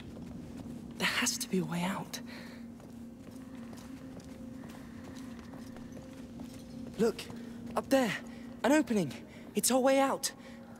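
A boy shouts with urgency.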